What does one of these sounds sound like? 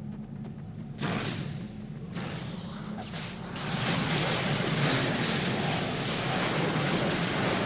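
Game battle sounds crash and roar, growing louder.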